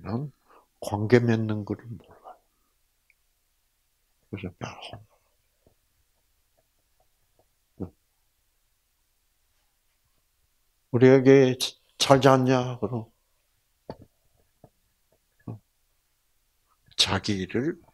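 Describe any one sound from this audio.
An elderly man speaks into a microphone with animation, in short bursts with pauses.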